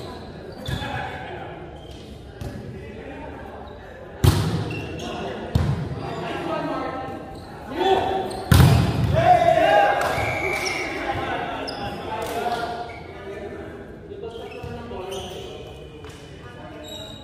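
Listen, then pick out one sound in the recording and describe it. Sneakers squeak on the hardwood floor.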